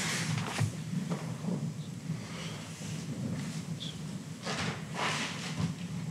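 A man speaks calmly into a microphone, heard through loudspeakers in a large echoing hall.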